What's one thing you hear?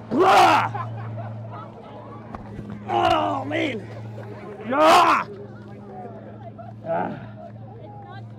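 A crowd of men and women cheers and whoops loudly nearby, outdoors.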